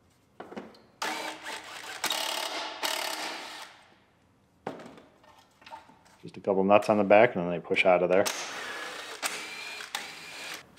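A handheld power tool whirs in short bursts.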